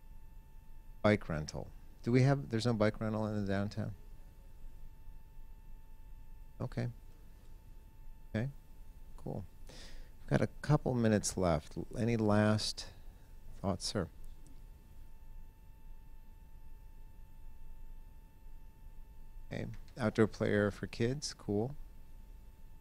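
A middle-aged man speaks calmly into a handheld microphone, heard through a loudspeaker in a large room.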